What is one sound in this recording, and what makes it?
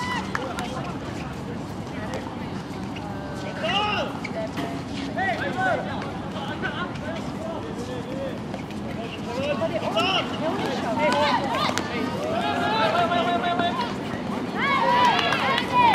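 Young spectators nearby chatter and cheer loudly outdoors.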